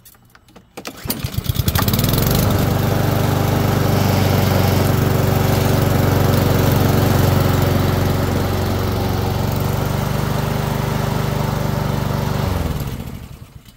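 A lawn mower engine starts with a pull and runs loudly and steadily, then cuts off.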